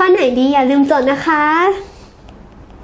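A young woman speaks brightly and with animation, close by.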